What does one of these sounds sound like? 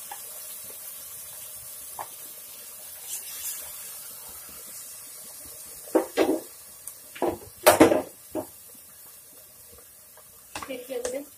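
Food sizzles steadily in a pot.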